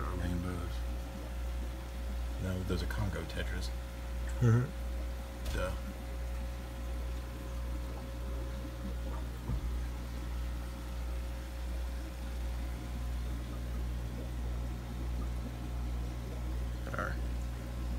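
An aquarium air pump hums steadily.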